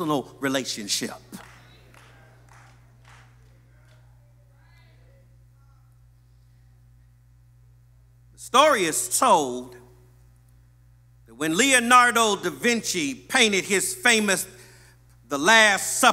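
A man preaches with animation into a microphone, pausing between phrases.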